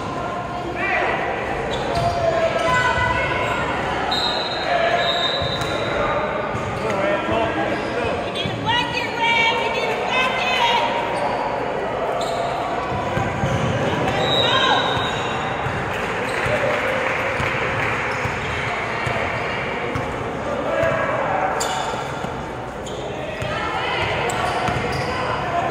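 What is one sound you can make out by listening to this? Young men shout and call out across a large echoing gym.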